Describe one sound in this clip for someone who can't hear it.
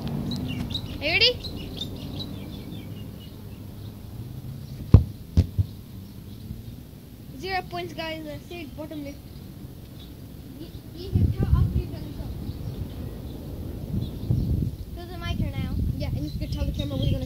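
A young boy calls out nearby.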